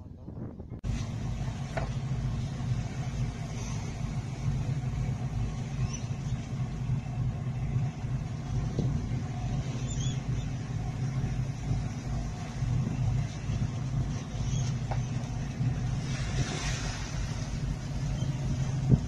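Waves slosh and splash.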